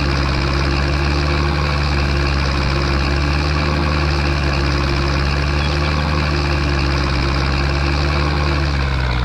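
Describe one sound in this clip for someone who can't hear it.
A tractor engine hums steadily while driving.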